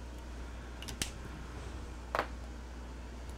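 A plastic marker clicks as it is picked up and set down.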